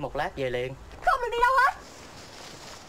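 A young woman pleads with emotion nearby.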